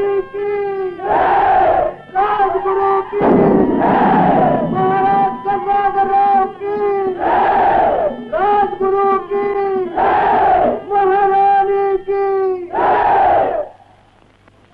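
A crowd cheers loudly in repeated bursts.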